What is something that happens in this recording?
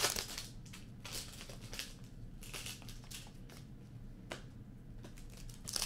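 Trading cards flick and slap softly as they are sorted.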